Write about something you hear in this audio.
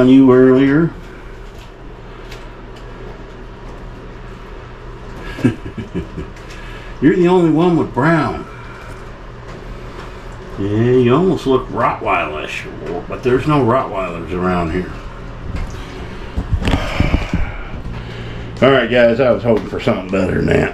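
A middle-aged man talks close by in a calm, chatty voice.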